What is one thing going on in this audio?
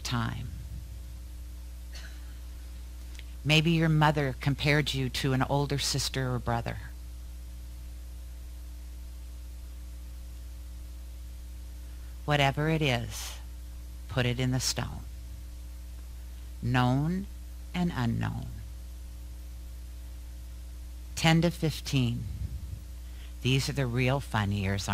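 A woman speaks calmly through a microphone in a large room, with long pauses.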